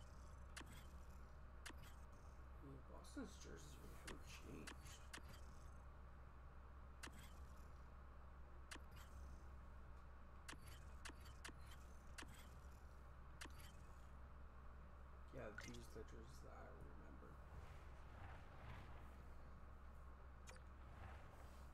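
A short menu click sounds each time an option changes.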